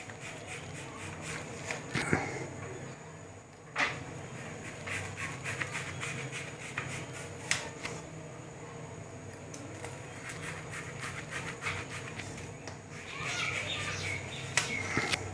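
A knife scrapes and taps against a metal tray while cutting a soft sweet.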